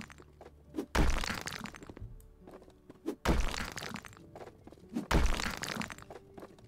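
Bricks and plaster crumble and clatter down after each blow.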